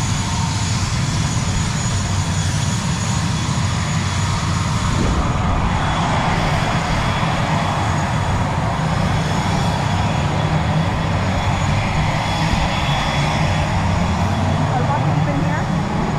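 Wind blows hard outdoors, buffeting close by.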